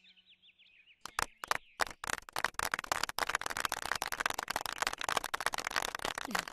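A crowd applauds and claps loudly.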